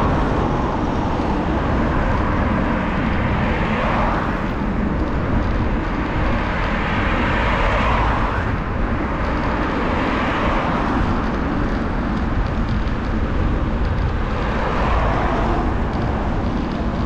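Cars pass by on a road nearby.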